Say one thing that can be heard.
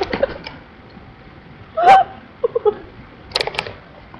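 A woman laughs close to the microphone.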